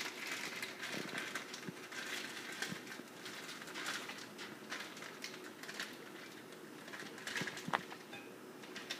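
A plastic bag crinkles and rustles as it is squeezed.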